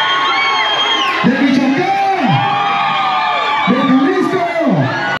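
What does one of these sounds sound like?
A man sings into a microphone over the band.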